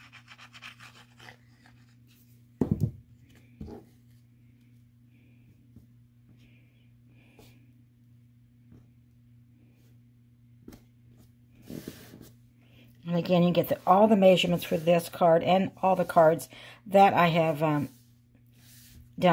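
Stiff paper rustles and taps softly as it is handled and pressed flat.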